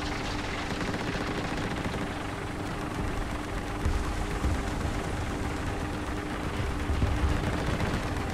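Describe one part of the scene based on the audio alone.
Tank tracks clatter over dirt.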